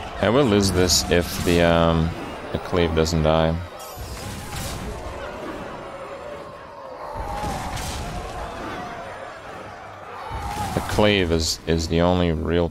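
Game sound effects clash and chime.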